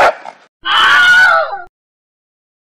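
A cartoon dog barks angrily.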